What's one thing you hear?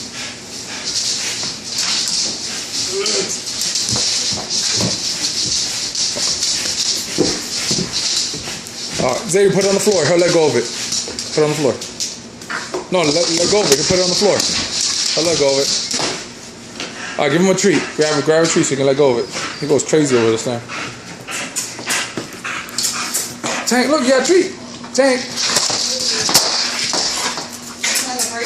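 A broom's bristles scrape and brush across a wooden floor.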